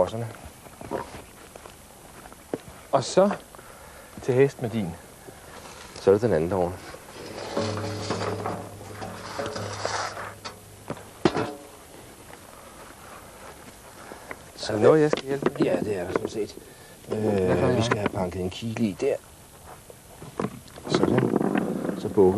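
A man speaks calmly, close by and through a microphone.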